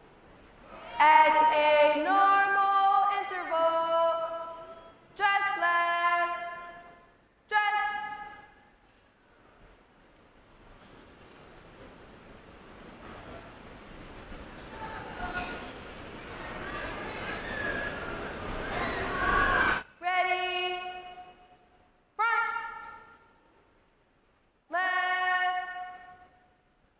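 A man shouts drill commands in long drawn-out calls in a large echoing hall.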